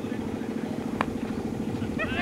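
A cricket bat knocks against a ball with a sharp crack.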